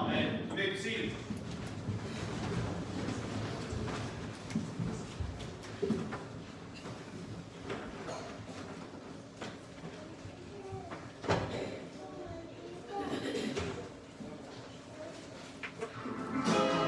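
A man speaks calmly in a large echoing room.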